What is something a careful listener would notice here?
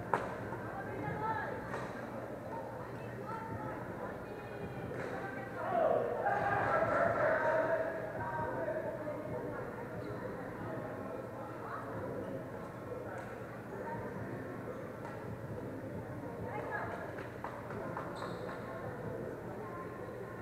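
Badminton rackets strike a shuttlecock in a large echoing hall.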